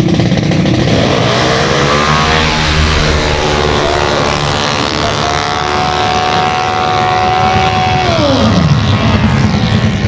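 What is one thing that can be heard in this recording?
Racing motorcycles scream past at full throttle, their pitch climbing through the gears.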